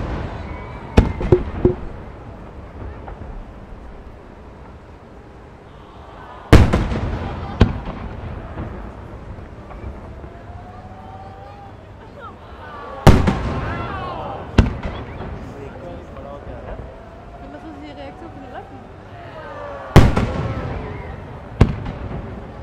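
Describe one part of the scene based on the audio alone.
Fireworks burst with loud booming bangs that echo away.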